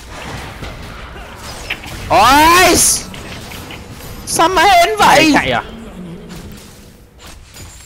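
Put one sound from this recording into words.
Game combat sound effects clash and crackle as figures fight.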